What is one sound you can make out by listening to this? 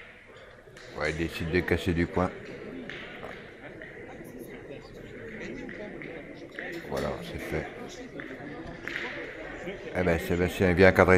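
A crowd of spectators claps and cheers.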